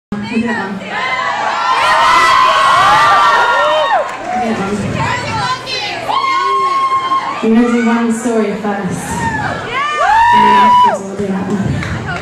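A young woman sings into a microphone, heard through loudspeakers.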